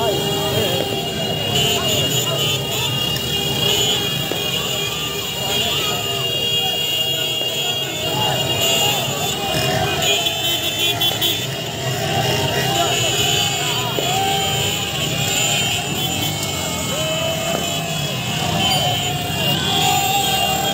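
Motorcycle engines rumble and rev close by.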